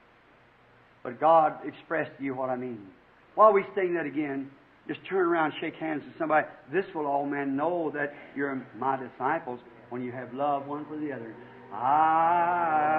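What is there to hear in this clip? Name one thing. A man preaches with animation through a microphone, with pauses between phrases.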